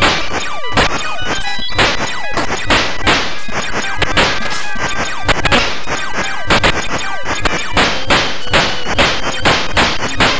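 Rapid electronic laser shots fire over and over.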